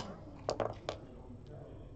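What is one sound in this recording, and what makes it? Checkers click sharply against a board.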